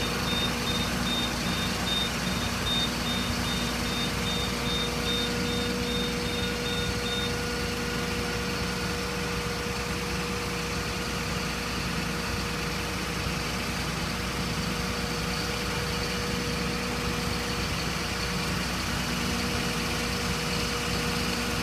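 A fire truck's engine hums steadily.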